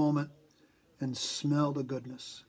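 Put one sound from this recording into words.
An elderly man sniffs deeply.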